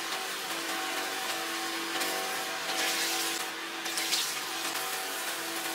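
Tap water runs into a bowl.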